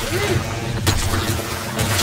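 A blade slashes and thuds into flesh.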